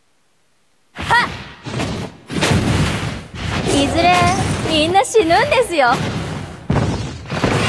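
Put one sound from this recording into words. Game fighters clash with magical whooshes and hits.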